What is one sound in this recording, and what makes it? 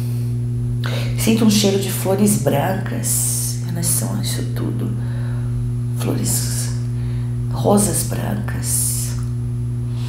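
A woman speaks calmly and closely into a microphone.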